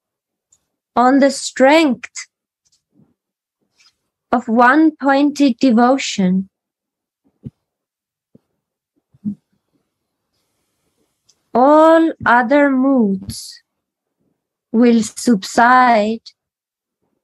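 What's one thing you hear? A young woman sings short phrases close to a microphone, heard through an online call.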